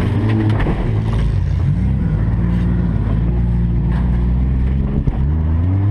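Car bodies bang and crunch against each other.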